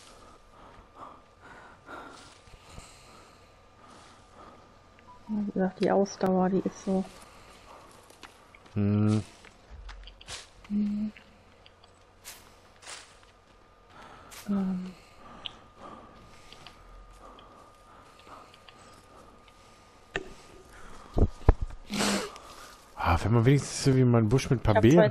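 Footsteps rustle through dry grass and undergrowth.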